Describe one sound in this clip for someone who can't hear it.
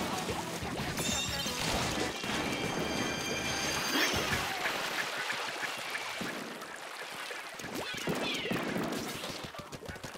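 Liquid ink splashes and squelches in quick bursts.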